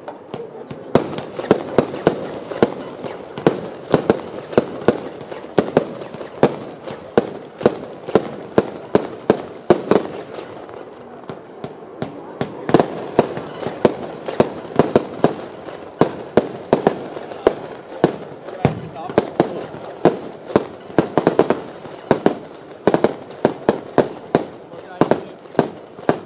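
Firework shells burst overhead with sharp bangs.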